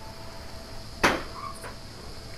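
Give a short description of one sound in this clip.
A small object is thrown and lands with a sharp clatter.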